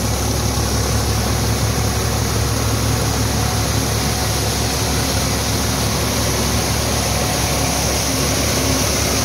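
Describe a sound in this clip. A tractor engine runs steadily nearby.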